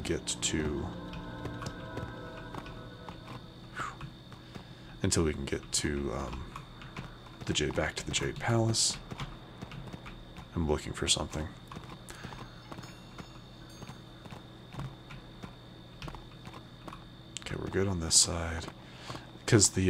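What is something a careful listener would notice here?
Metal hooves clop steadily on stone.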